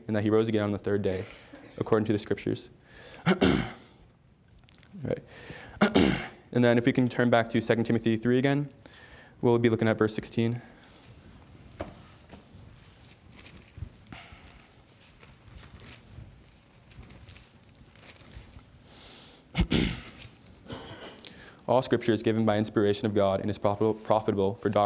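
A man reads aloud calmly through a microphone.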